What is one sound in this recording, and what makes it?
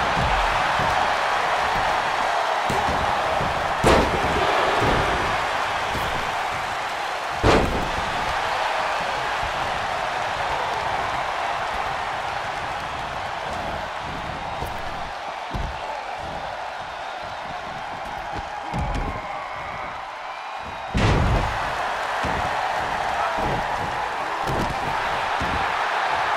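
A large crowd cheers and roars steadily.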